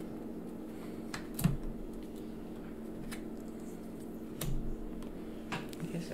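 Small game pieces click and tap on a board.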